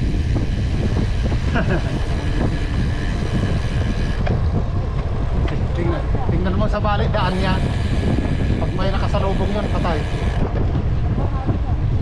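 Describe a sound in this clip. Wind buffets a microphone on a moving road bike.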